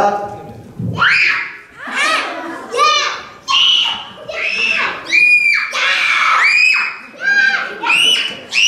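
Children answer one by one in high voices.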